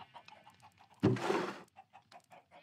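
A wooden barrel creaks open.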